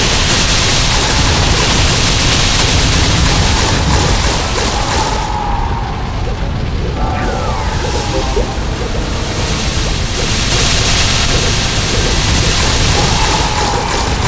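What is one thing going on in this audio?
Magic spell effects whoosh and crackle over and over.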